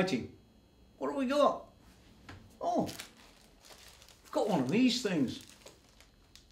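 An older man speaks calmly and close by, in short phrases with pauses.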